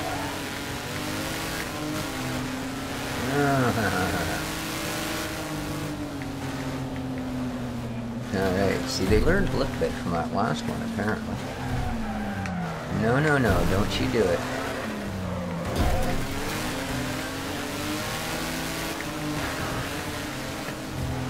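A racing engine drones steadily and changes pitch as it shifts gears.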